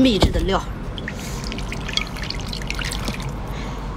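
Fingers stir wet clams with a squelching clatter.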